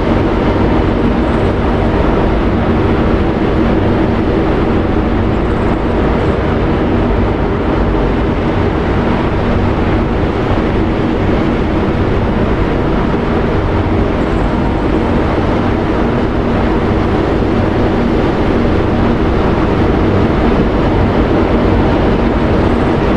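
Turboprop engines of a large aircraft drone loudly and steadily nearby.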